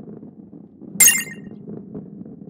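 A short bright chime rings.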